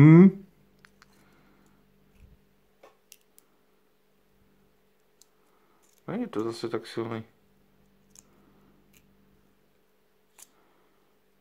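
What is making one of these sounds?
Small metal parts click faintly between fingers.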